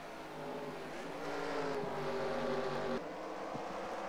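A race car engine whines past close by, its pitch shifting.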